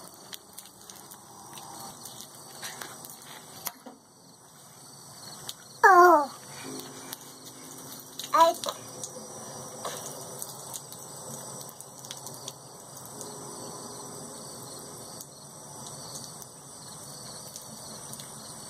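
Water trickles from a garden hose onto concrete.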